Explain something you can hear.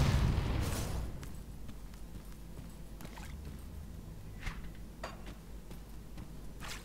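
Footsteps scuff softly on rough ground.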